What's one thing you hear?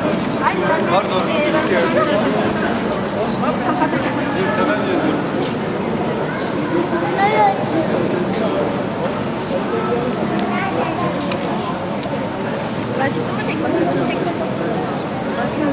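Children and adults chatter in a large echoing hall.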